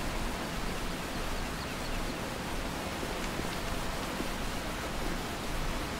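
Water from a waterfall rushes steadily.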